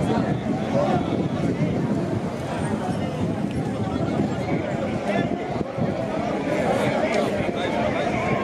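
A crowd of men and women chatters and murmurs outdoors nearby.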